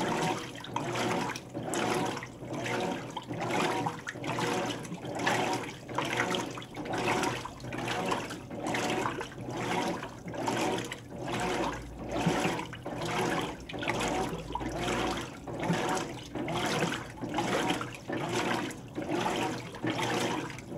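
Water sloshes and churns in rhythmic surges as a washing machine agitates.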